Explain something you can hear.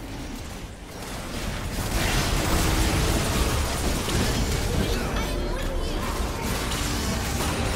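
Magic blasts and impacts crackle and boom in a hectic fight.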